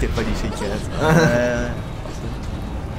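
A young man speaks quietly and anxiously, close by.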